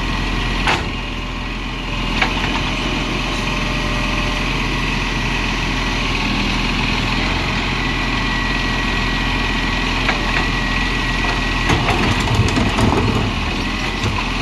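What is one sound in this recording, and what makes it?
A hydraulic arm whines as it lifts and lowers a bin.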